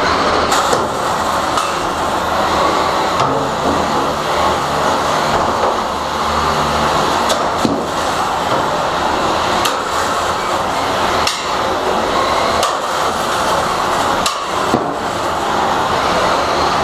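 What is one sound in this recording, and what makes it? Small robot motors whine and whir as the machines dart around.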